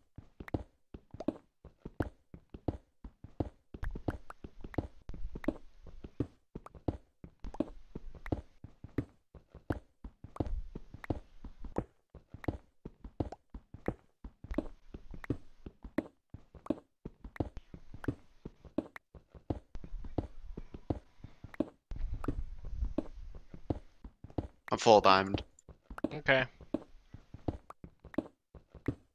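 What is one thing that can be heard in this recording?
A pickaxe chips rapidly at stone, block after block.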